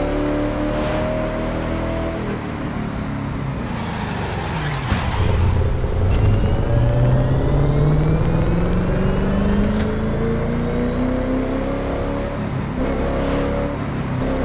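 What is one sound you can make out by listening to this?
A sports car engine roars, dropping as the car brakes and then revving up again through the gears.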